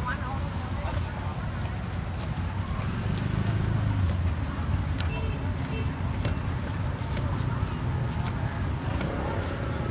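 A cleaver chops sharply on a wooden board.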